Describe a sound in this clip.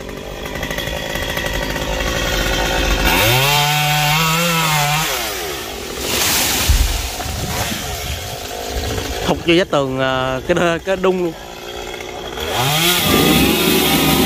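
A chainsaw engine revs up and down in bursts.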